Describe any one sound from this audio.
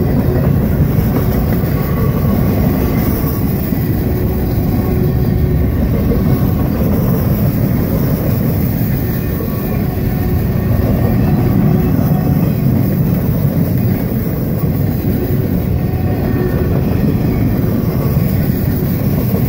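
A freight train rumbles loudly past up close.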